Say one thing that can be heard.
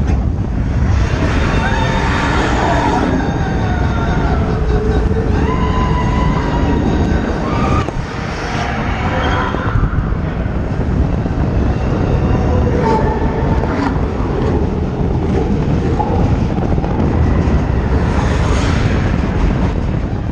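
Riders scream and shout with excitement.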